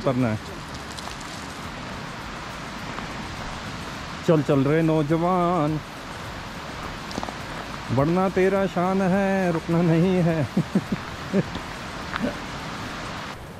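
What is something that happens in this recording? A river rushes steadily below.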